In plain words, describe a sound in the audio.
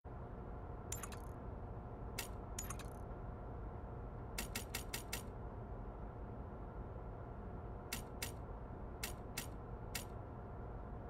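Short soft clicks tick one after another.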